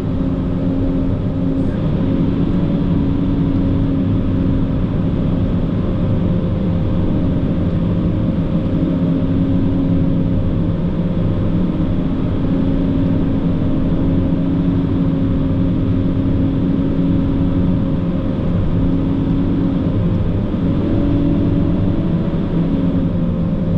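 A heavy diesel engine drones loudly and steadily from inside a vehicle cab.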